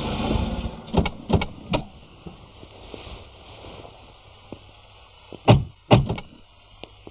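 A car door opens and shuts with a thud.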